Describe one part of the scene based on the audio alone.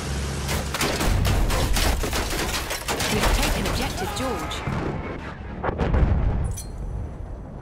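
Bombs explode with heavy booms.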